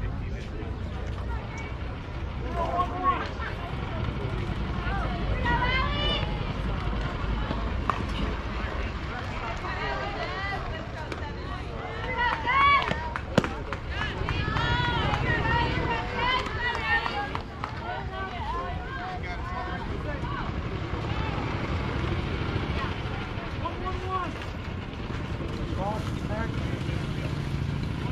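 Young players shout and cheer across an open field.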